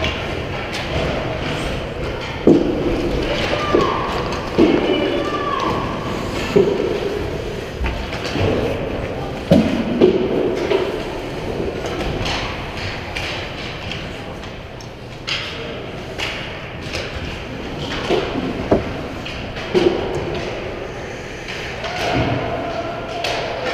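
Young children shout and call out in a large echoing rink.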